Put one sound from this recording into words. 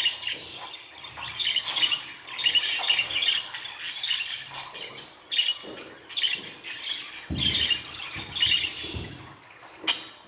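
Budgies chirp and warble close by.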